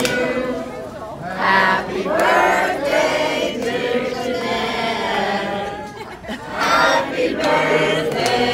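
A crowd of people claps their hands.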